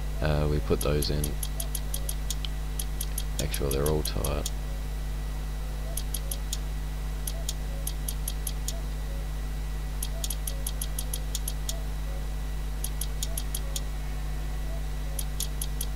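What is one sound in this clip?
A spanner tightens a bolt in quick bursts of clicks.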